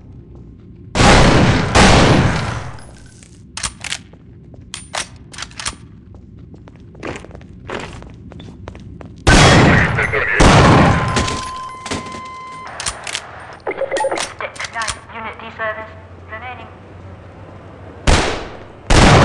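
Rapid gunfire rattles in loud bursts that echo off hard walls.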